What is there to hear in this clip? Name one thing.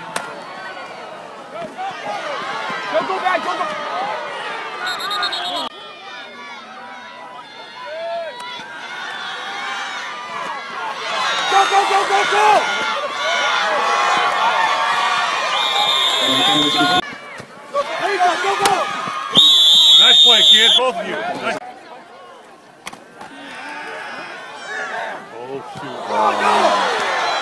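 A crowd cheers and shouts from the stands.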